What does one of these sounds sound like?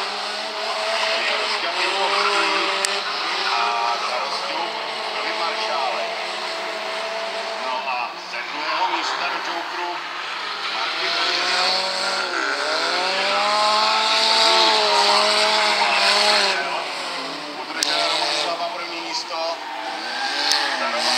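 Car engines roar and rev hard, rising and falling in pitch.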